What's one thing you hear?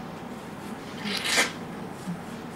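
A man blows his nose into a tissue.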